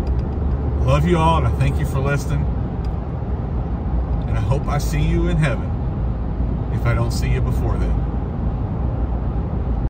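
A car engine hums steadily with road noise from inside a moving car.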